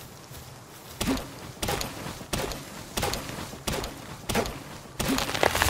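An axe chops into a tree trunk with sharp, repeated thuds.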